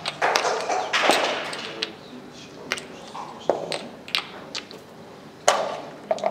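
Wooden game pieces click and slide on a board.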